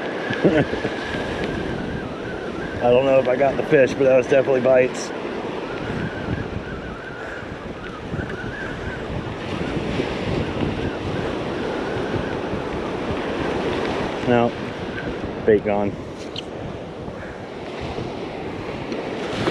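Small waves wash and break on a shore nearby.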